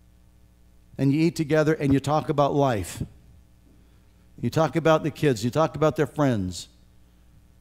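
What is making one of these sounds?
An elderly man speaks slowly and emphatically through a microphone.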